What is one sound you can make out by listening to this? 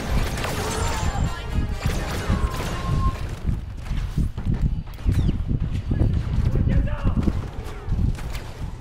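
Blaster shots zap and crack in quick bursts.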